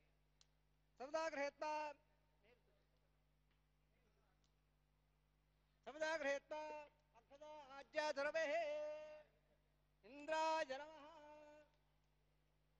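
Men chant a prayer in short, strong phrases.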